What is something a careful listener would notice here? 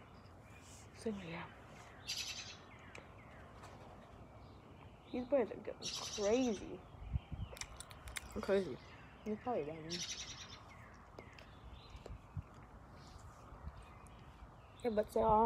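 A boy talks casually, close by.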